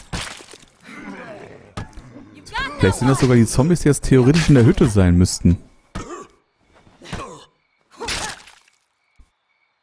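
Heavy blows thud against bodies in a scuffle.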